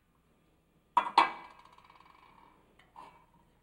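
A metal pot clangs against a stove and rings.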